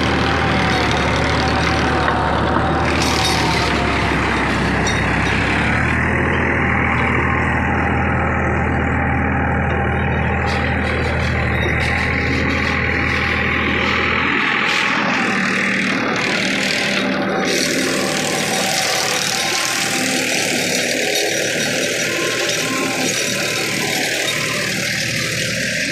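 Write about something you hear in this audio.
A tractor engine runs with a steady low rumble.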